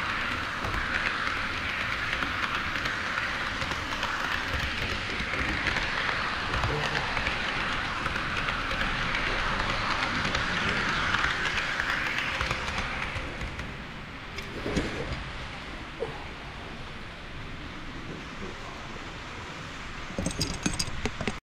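Model train wheels click over rail joints.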